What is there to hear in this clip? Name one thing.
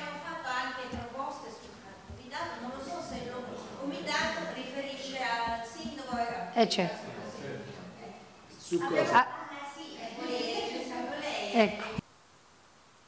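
A middle-aged woman speaks with animation into a microphone in a room with some echo.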